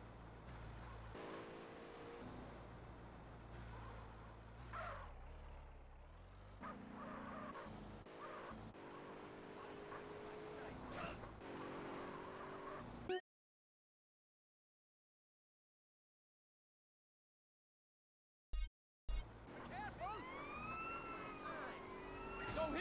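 A car engine hums and revs as the car drives.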